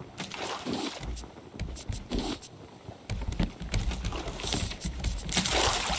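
A storage box lid opens and closes with a soft thud.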